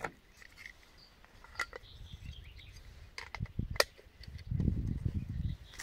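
Small stones and twigs clatter and scrape on the ground.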